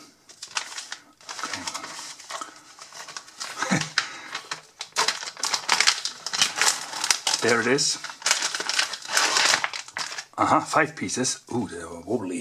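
Plastic film crinkles and rustles as a package is opened.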